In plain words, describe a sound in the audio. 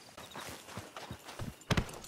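A horse's hooves thud on dry ground.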